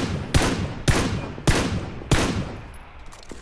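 A rifle fires several loud shots that ring out.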